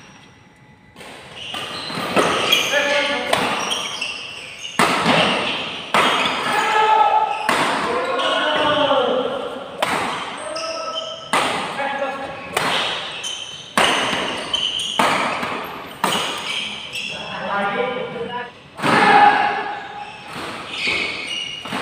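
Badminton rackets strike a shuttlecock back and forth in an echoing hall.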